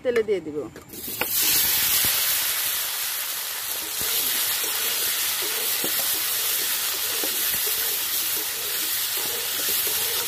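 Potatoes sizzle loudly in hot oil.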